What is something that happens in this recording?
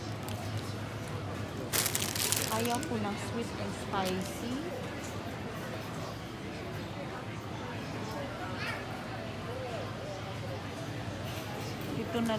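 A shopping cart rattles as it rolls over a tiled floor.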